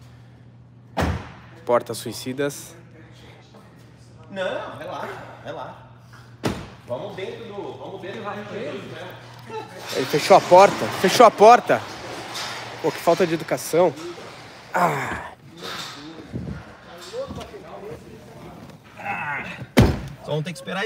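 A car door thumps shut.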